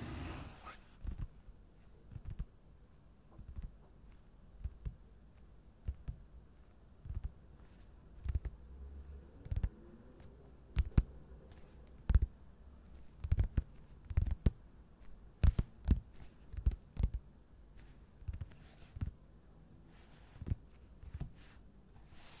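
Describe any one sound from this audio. Fingertips tap lightly on paper.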